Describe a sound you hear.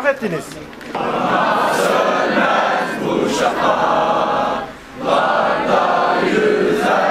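A large crowd of young people sings together outdoors.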